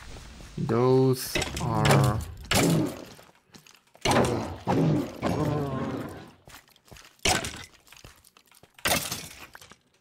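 A sword strikes a skeleton with quick thuds.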